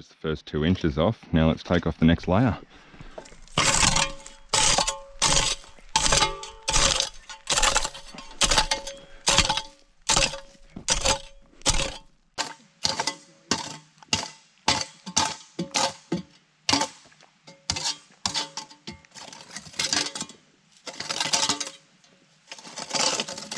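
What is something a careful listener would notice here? A pick strikes hard dirt again and again.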